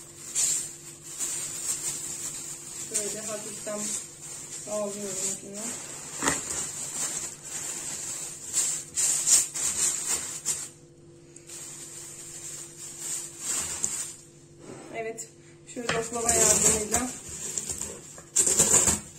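A plastic bag crinkles and rustles.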